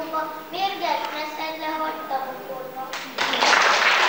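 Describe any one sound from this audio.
A young girl sings into a microphone.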